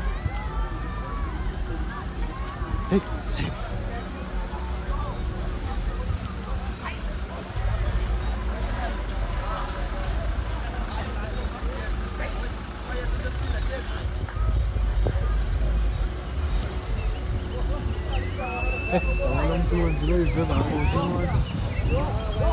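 A crowd of men and women talk and call out nearby outdoors.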